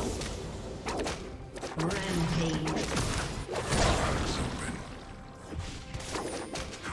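Magic spell effects whoosh and crackle during a fight.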